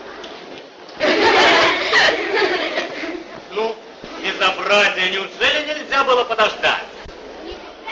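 A middle-aged man talks with animation close by.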